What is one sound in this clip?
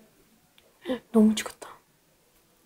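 A young boy speaks briefly and cheerfully up close.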